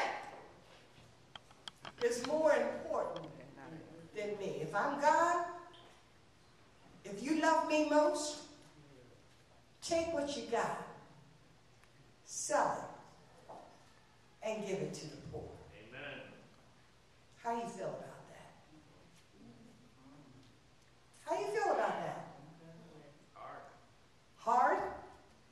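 An elderly woman speaks with animation into a microphone in a room with some echo.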